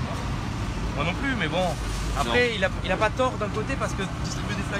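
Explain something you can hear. A man talks nearby.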